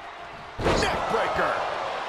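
A body slams hard onto a wrestling mat.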